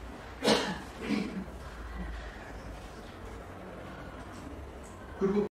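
An elderly man speaks calmly in short phrases.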